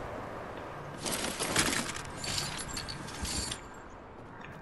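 A container is rummaged through with rattling and clinking.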